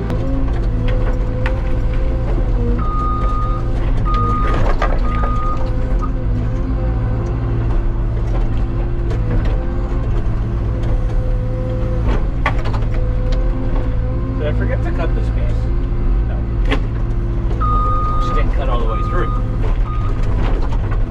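Hydraulics whine as the machine's arm moves.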